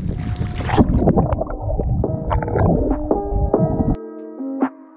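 Bubbles gurgle underwater.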